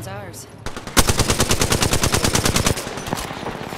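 Automatic gunfire rattles in a rapid burst.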